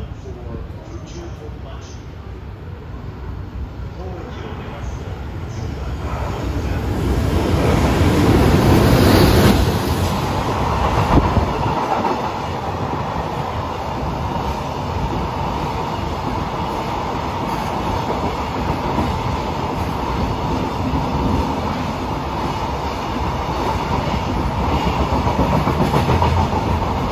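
A freight train approaches and roars past close by.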